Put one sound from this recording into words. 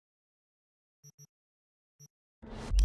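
Game menu sounds blip briefly a few times.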